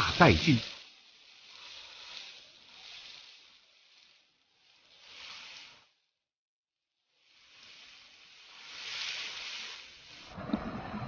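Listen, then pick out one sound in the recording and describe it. Food sizzles and crackles in a hot wok.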